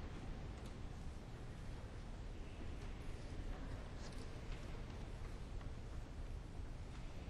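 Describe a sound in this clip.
A man speaks slowly into a microphone in a large echoing hall.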